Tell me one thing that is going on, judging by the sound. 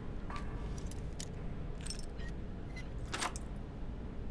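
A lock pick clicks and scrapes inside a metal lock.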